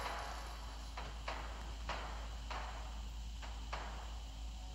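Footsteps tap on a stone floor in an echoing hall.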